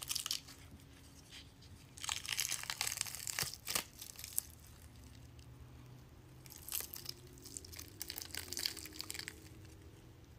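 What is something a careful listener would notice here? Sticky latex peels and crackles off skin close up.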